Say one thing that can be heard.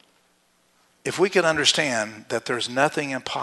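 A middle-aged man speaks with animation to an audience through a microphone.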